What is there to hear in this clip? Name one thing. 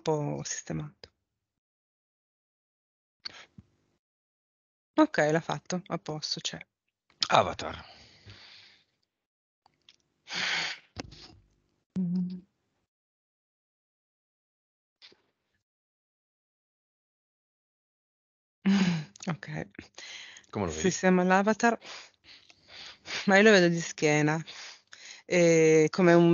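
A man talks calmly through a headset microphone, with pauses.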